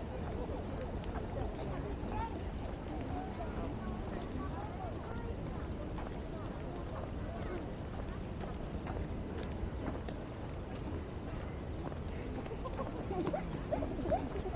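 Children chatter quietly a short way off.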